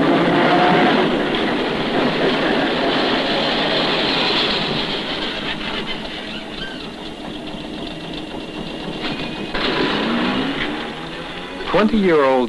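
A streetcar rumbles and rattles along its tracks.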